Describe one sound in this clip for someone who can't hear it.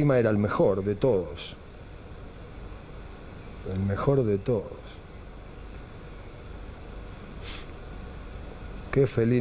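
A middle-aged man speaks calmly and haltingly into a microphone.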